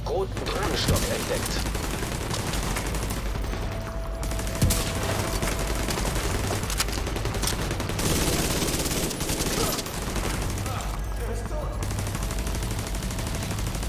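Rifle shots crack out sharply, one at a time.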